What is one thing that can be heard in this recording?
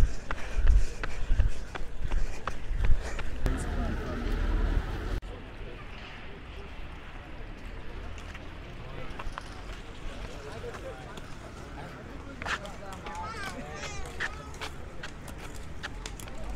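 Roller skates roll and scrape over asphalt.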